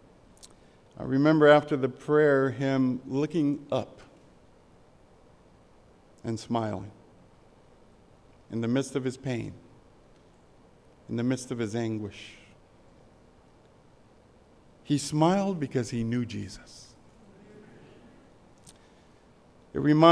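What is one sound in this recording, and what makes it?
A man speaks slowly and earnestly into a microphone, with pauses between phrases, in a large hall.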